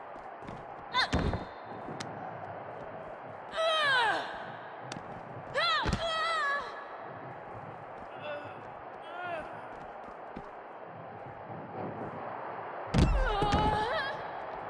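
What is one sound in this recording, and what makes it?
Heavy blows thud as two fighters strike and slam each other.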